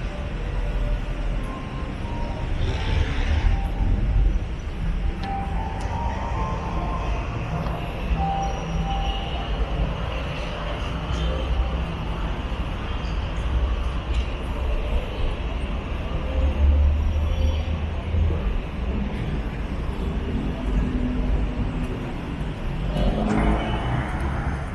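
City traffic rumbles steadily in the distance outdoors.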